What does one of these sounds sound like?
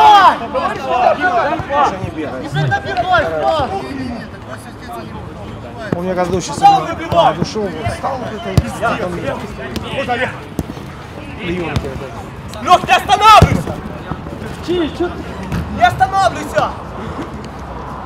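Men shout to each other across an open outdoor pitch.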